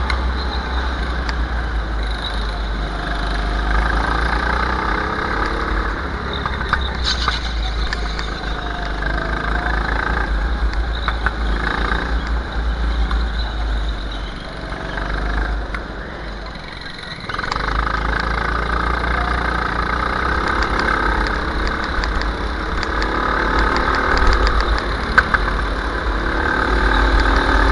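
A go-kart engine roars at speed, up close.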